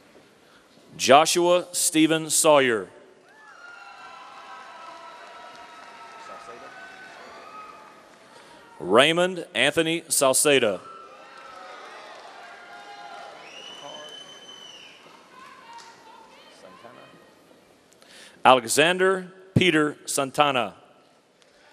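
A man reads out names through a microphone and loudspeakers, echoing in a large hall.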